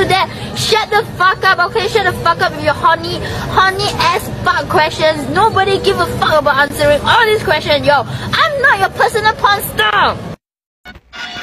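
A young woman sings loudly and emotionally close by.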